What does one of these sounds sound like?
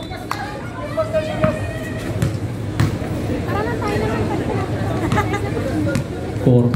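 Men call out to each other outdoors during a game.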